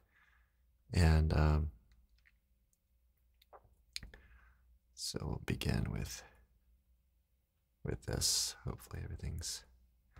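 A man speaks calmly and closely into a microphone, with short pauses.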